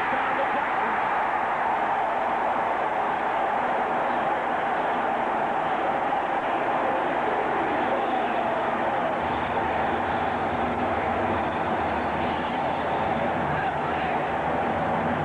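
A large stadium crowd cheers and roars loudly throughout.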